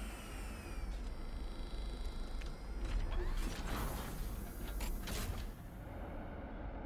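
A machine hums with a low, steady drone.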